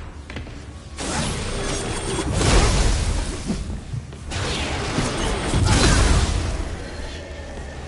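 Loud blasts roar and rumble in bursts.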